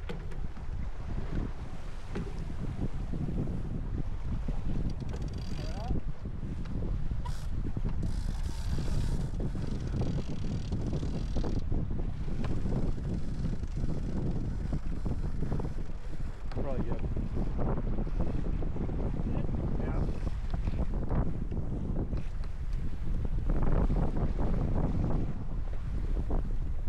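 A man talks calmly nearby, partly masked by wind.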